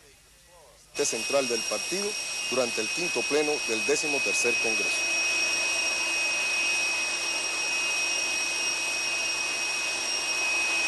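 A jet engine whines steadily with a high hiss.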